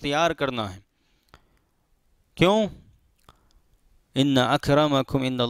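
A man speaks calmly and clearly into a close headset microphone, in short phrases with pauses.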